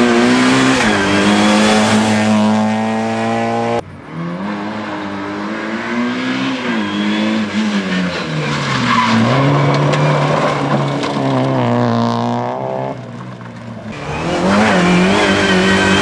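A rally car engine revs hard and roars past at speed.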